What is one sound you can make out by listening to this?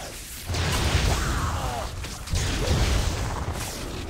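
Electric spell effects crackle and zap.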